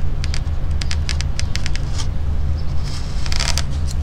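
A knife cuts through leather.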